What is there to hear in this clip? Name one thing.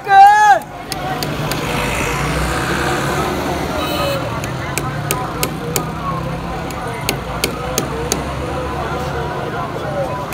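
Traffic rumbles on a road below.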